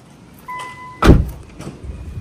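A car door shuts with a heavy thud.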